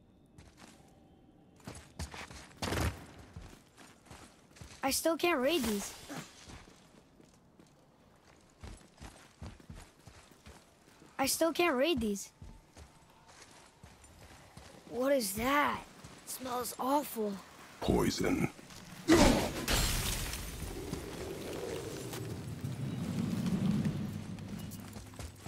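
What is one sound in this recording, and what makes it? Heavy footsteps thud slowly on a stone floor.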